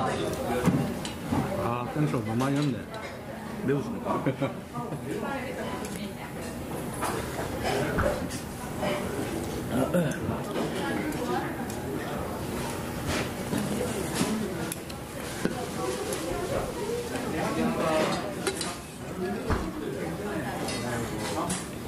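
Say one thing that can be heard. A metal ladle clinks against a metal pot.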